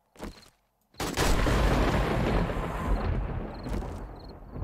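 Rapid gunshots fire and echo.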